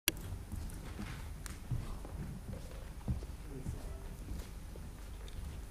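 A violin plays a melody in a large hall.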